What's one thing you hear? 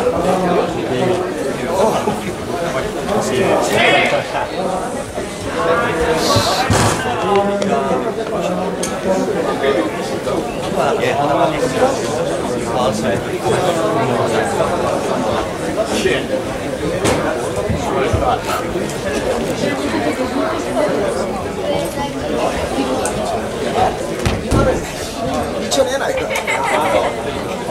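A crowd of people chatters and calls out in a large echoing hall.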